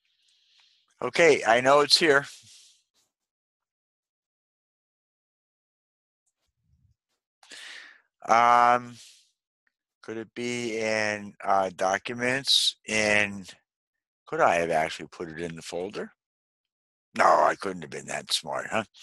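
A man talks calmly into a microphone, explaining step by step.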